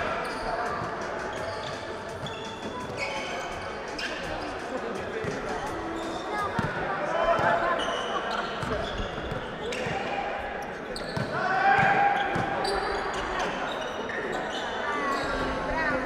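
A basketball bounces on a hard floor in an echoing hall.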